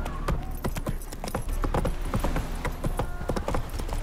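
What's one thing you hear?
Hooves clatter on wooden planks.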